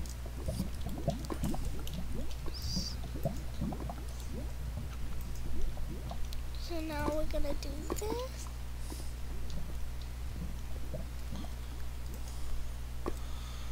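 Lava bubbles and pops softly.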